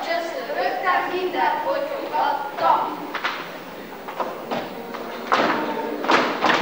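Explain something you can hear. Children's feet tap and shuffle on a wooden stage.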